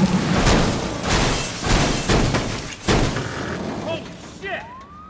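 A car crashes and scrapes loudly along the road.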